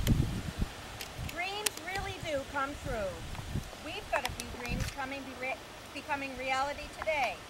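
A woman reads aloud calmly, nearby, outdoors.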